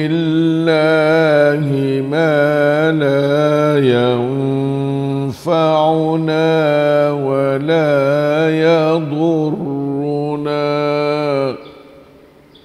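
An elderly man chants a recitation in a drawn-out melodic voice through a microphone.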